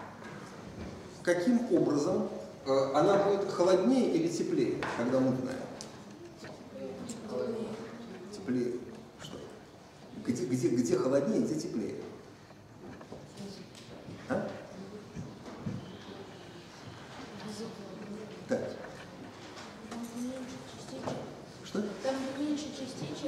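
A middle-aged man speaks with animation, as if lecturing to a room.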